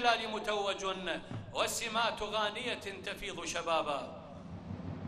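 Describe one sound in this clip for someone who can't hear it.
A group of men shout loudly in unison.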